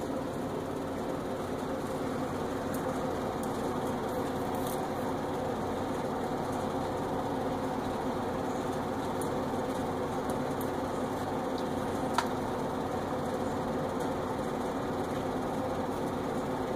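Sprinkles rattle softly in a shaker.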